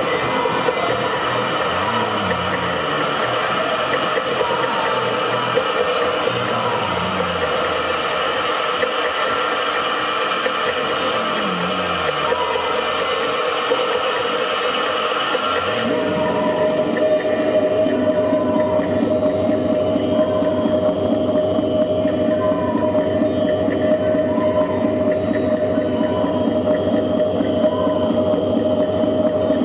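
Electronic music plays loudly through speakers, with droning tones and gliding bass sounds.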